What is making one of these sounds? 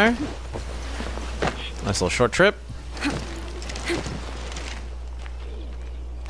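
Footsteps crunch softly on dirt and grass.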